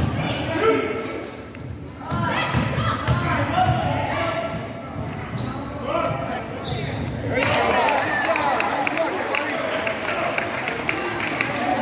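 Teenage boys shout to each other in an echoing gym.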